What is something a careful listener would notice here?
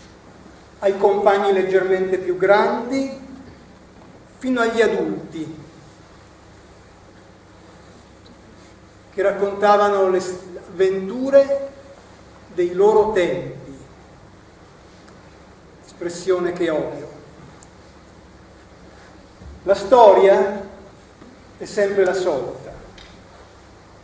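A middle-aged man speaks expressively in bursts with long pauses.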